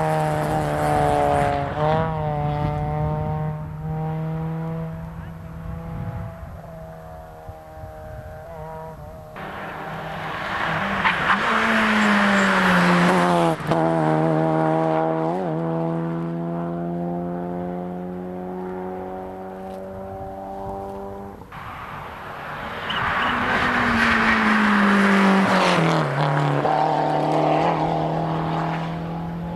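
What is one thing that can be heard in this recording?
A rally car engine roars loudly, revving high and dropping through gear changes.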